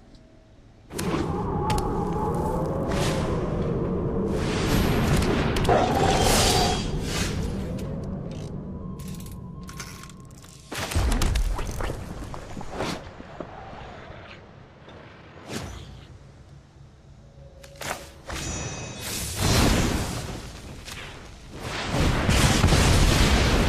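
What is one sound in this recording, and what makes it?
Short whooshing and chiming game effects sound as cards are played.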